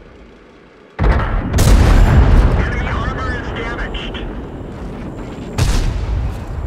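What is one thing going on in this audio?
A tank cannon fires with loud, booming blasts.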